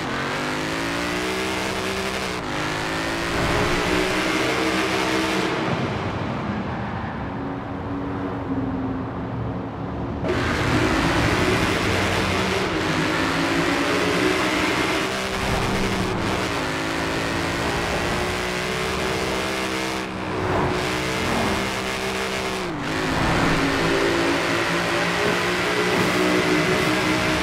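A powerful car engine roars at high revs, climbing and briefly dropping with each gear change.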